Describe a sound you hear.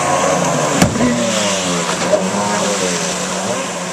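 Water sprays and splashes as a jet ski crashes down.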